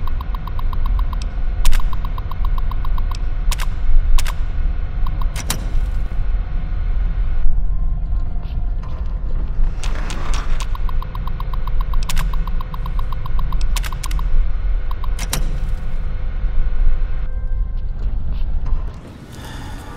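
An old computer hums low and steadily, then drops quieter.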